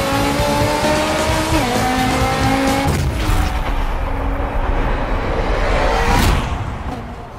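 A race car engine roars at high speed, its pitch rising as it shifts gears.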